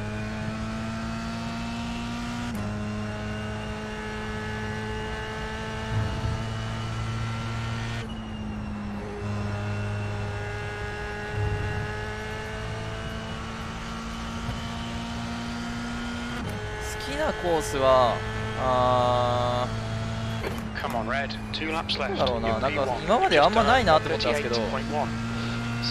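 A racing car engine hums steadily, its pitch climbing and dropping through gear changes.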